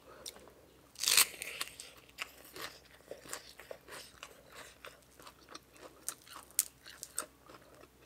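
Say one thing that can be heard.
A young woman chews crunchy food with wet smacking sounds.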